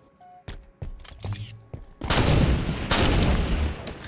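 A sniper rifle fires a loud, sharp shot.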